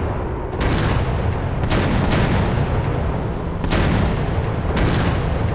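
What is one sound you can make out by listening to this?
Machine guns fire in rapid bursts.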